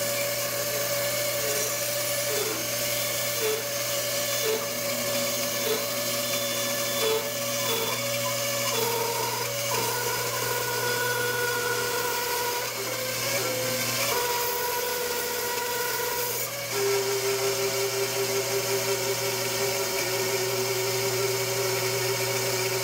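A band saw hums steadily.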